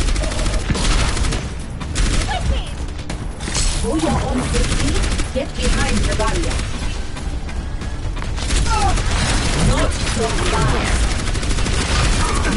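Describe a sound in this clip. A weapon fires bouncing energy blasts in quick bursts.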